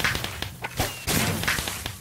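A firework arrow whooshes through the air.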